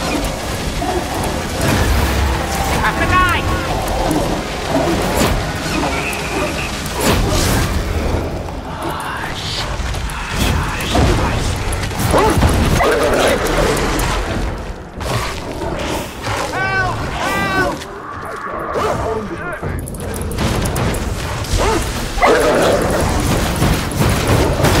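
Electricity crackles and snaps in loud bursts.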